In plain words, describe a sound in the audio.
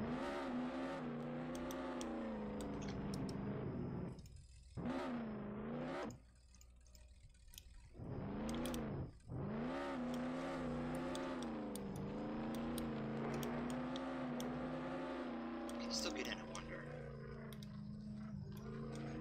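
A simulated sports car engine hums and revs.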